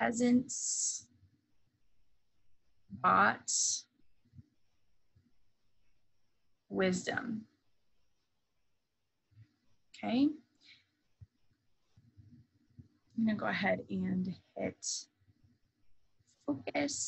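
A woman speaks calmly into a microphone, in short phrases with pauses.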